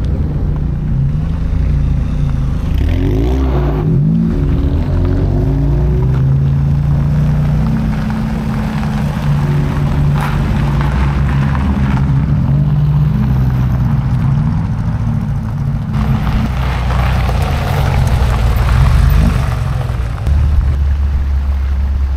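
Car engines idle and rumble nearby.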